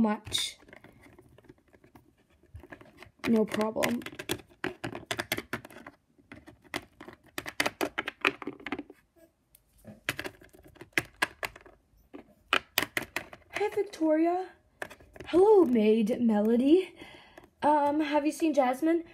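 Small plastic toys tap and click on a hard surface.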